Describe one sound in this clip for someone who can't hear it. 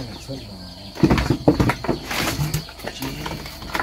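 A plastic box knocks against wooden planks.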